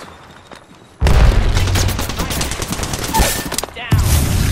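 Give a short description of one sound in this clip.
Rapid gunfire blasts loudly close by.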